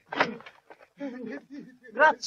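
A man shouts commands.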